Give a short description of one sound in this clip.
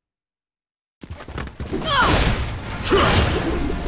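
A heavy metal shield swings with a whoosh.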